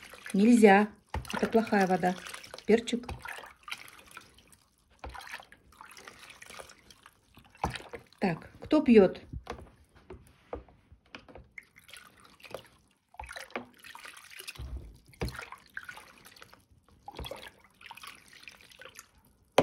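Water splashes and sloshes as a cup dips into a basin.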